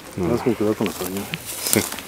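Dry leaves crunch underfoot.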